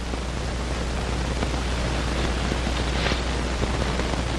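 Leafy branches rustle as someone pushes through bushes.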